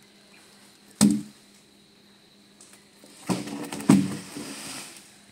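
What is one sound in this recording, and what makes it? Heavy wooden planks thud as they are dropped onto each other.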